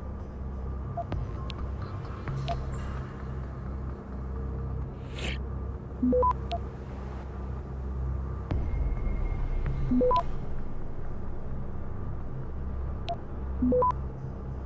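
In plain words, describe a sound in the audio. Short electronic beeps and chimes sound now and then.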